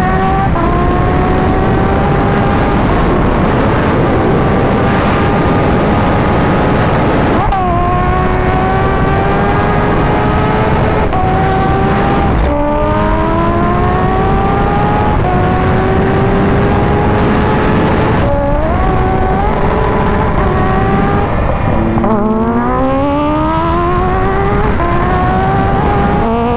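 A motorcycle engine roars loudly, climbing through the gears with sharp shifts.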